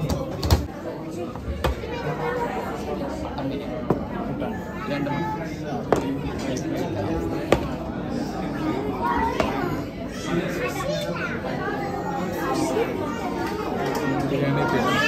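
Many people chatter around in a busy, echoing room.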